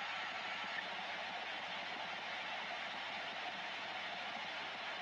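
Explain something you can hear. Static hisses steadily from a radio loudspeaker.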